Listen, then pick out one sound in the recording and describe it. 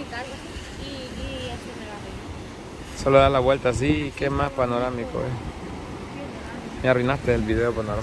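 Waves wash gently onto a rocky shore.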